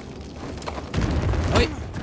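Heavy thuds land as a figure drops down.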